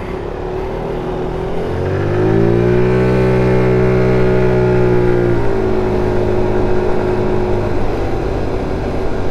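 A scooter engine drones steadily, rising in pitch as it speeds up and then settling.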